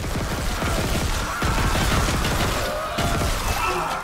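A plasma gun fires in rapid bursts.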